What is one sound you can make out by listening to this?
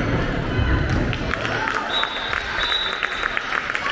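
A handball bounces on the floor with dull thuds.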